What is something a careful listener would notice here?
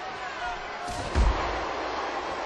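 A body slams down onto a wrestling ring mat with a heavy thud.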